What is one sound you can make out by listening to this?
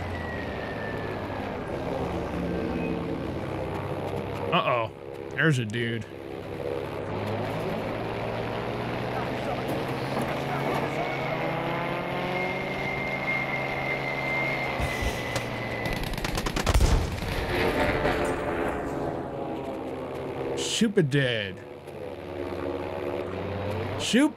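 A plane engine drones steadily.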